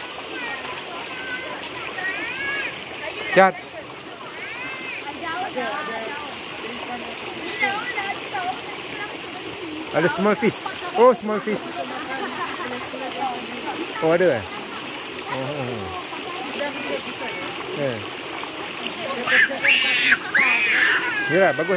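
Adults talk casually nearby.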